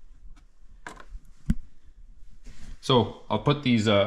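A small cardboard box is set down on a hard table with a light tap.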